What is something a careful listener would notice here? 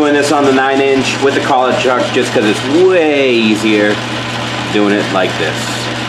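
A lathe cutting tool scrapes and chatters against spinning metal.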